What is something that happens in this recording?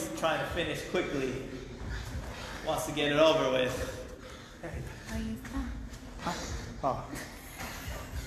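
A heavy kettlebell thuds onto a hard floor.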